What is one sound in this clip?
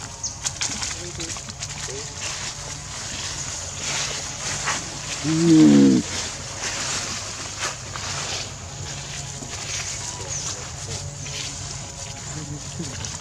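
Dry leaves rustle and crunch as a monkey scampers over them.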